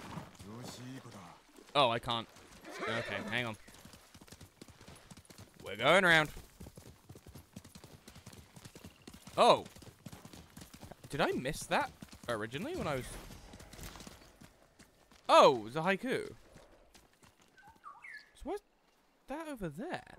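Horse hooves thud quickly in a steady gallop.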